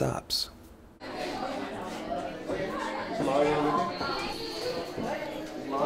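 A group of people chatter in a room.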